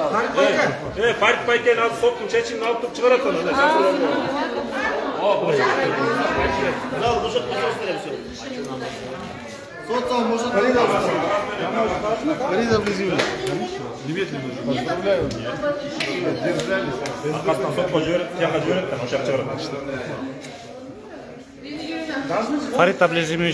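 An older man talks with animation close by.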